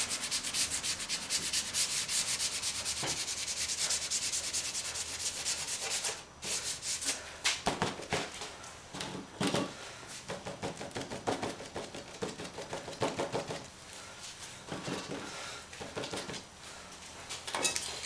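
Crumpled paper rubs and scrapes across a sheet of paper.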